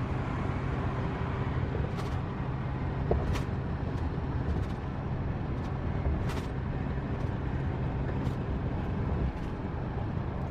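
A car engine hums steadily with road noise from inside the car.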